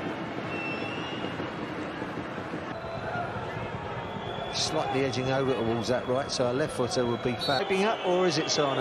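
A large stadium crowd roars and chants in a big open space.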